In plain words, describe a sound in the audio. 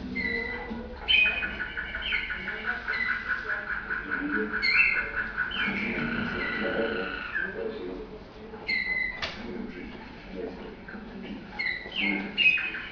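Canaries sing loud, rapid trilling songs, heard through a television speaker.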